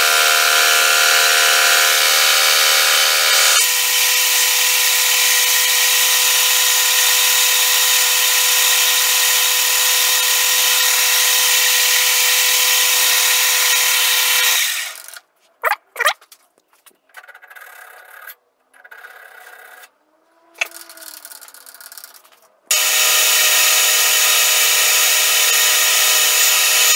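A lathe motor whirs steadily with a high hum.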